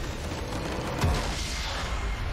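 A heavy blast booms as a game structure explodes.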